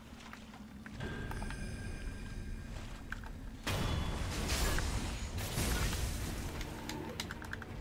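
Swords clash and strike with sharp metallic blows.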